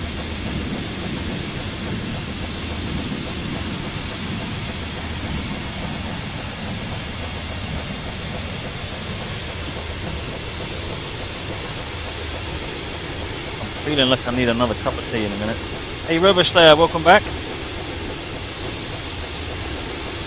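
A steam locomotive rumbles steadily along the track.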